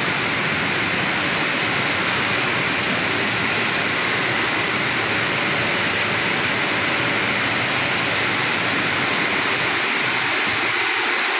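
A conveyor belt rumbles and clatters steadily.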